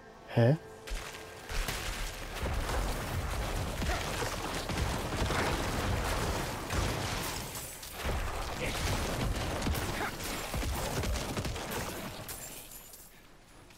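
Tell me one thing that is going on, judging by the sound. Game combat sounds crash and clatter.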